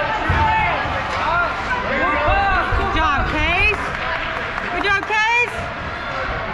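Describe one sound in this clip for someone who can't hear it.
Young children shout and call out in a large echoing hall.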